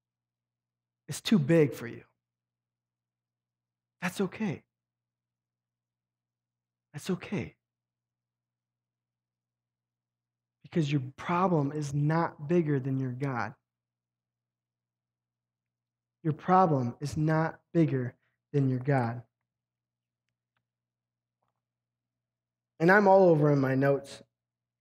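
A young man speaks calmly through a microphone in bursts, with long pauses.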